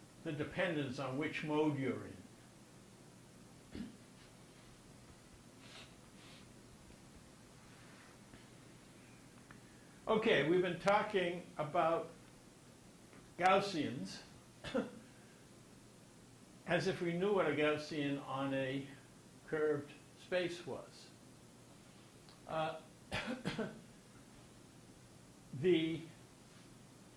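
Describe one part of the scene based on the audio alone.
An elderly man lectures calmly through a microphone, pausing often.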